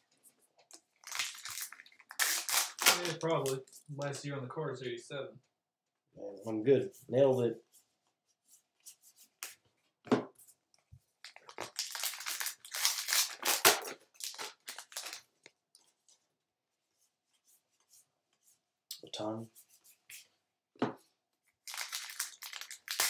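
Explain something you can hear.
A foil wrapper crinkles and tears as a pack is ripped open.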